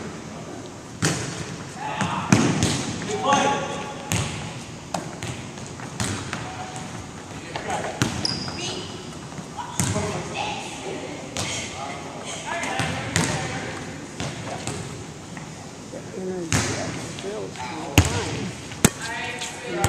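A volleyball thumps off players' hands and arms again and again, echoing in a large hall.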